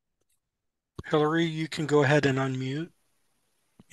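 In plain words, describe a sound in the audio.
A young man speaks briefly over an online call.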